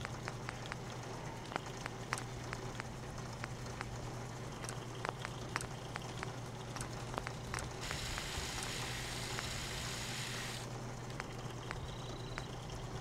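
Short soft clicks tick repeatedly as menu choices change.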